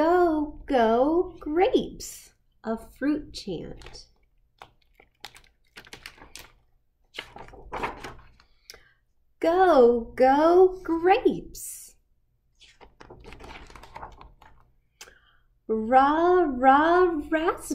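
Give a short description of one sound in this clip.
A young woman reads aloud in a lively, sing-song voice close by.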